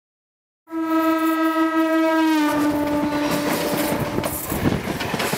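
A train horn blares loudly and drops in pitch as the train passes close by.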